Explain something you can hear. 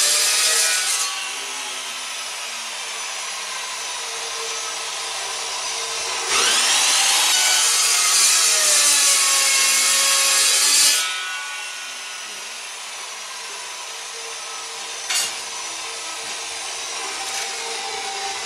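A saw motor hums and winds down between cuts.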